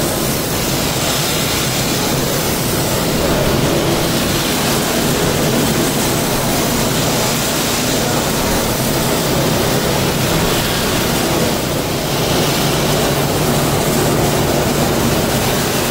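A heavy machine roller spins with a loud, steady mechanical roar.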